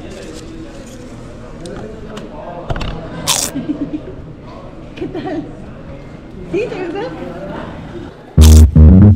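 Paper wrappers rustle and crinkle.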